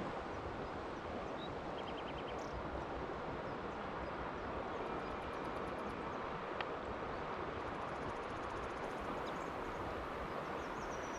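A river flows and ripples steadily over stones outdoors.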